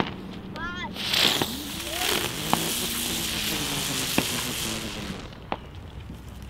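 A firework fizzes and sprays sparks with a loud hiss.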